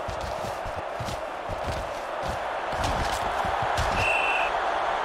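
Football players' pads collide with dull thuds.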